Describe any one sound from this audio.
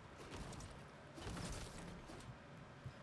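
A magic blast whooshes and crackles against rock.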